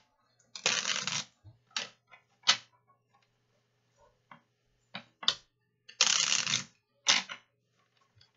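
Playing cards riffle and shuffle in quick bursts.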